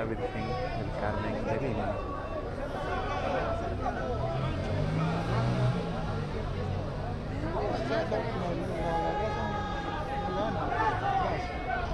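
A large crowd of men and women talks and calls out close by.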